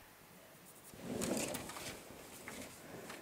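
Stiff paper rustles as it is lifted and shifted.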